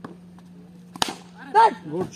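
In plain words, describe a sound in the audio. A cricket bat sharply cracks against a ball.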